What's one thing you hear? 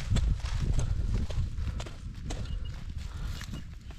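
A digging tool scrapes and scratches through dry soil.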